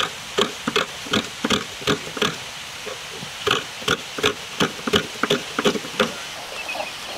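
A coconut half scrapes against a metal grater in quick, rhythmic strokes.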